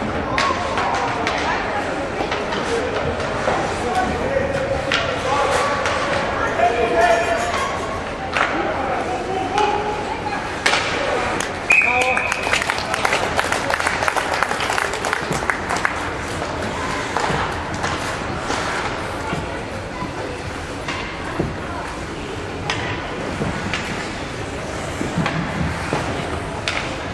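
Young players shout across an echoing ice rink.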